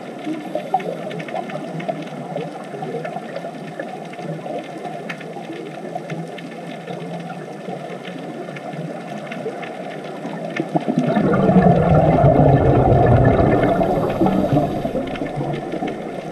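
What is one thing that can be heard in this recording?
Air bubbles from scuba divers gurgle and rumble underwater, growing loud and close toward the end.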